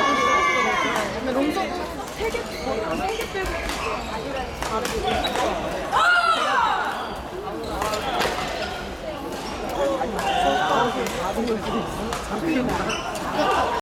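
Many young people chatter and call out in a large echoing hall.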